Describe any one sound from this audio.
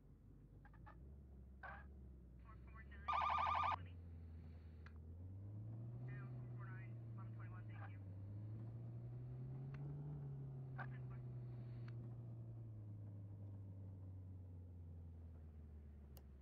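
A car engine hums and revs up and down as the car drives.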